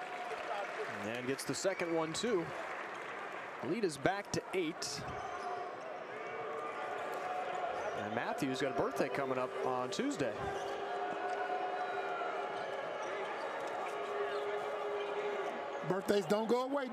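Basketball shoes squeak sharply on a hardwood court.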